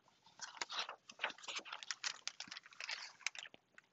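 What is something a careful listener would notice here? A book page turns with a papery rustle.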